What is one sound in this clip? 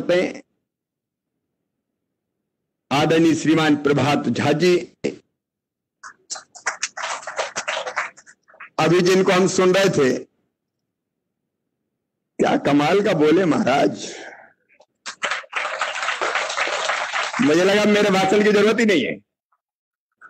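A middle-aged man speaks forcefully into a microphone, heard through loudspeakers, with pauses between phrases.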